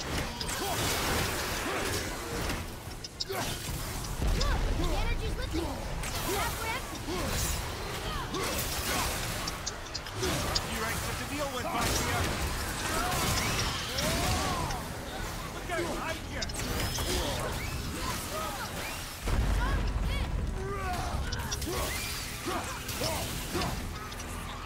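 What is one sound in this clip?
Heavy weapon blows crash and clang in quick succession.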